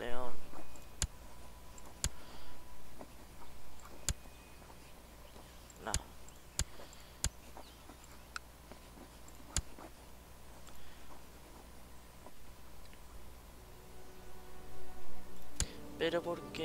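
Short, sharp clicks sound now and then as menu buttons are pressed.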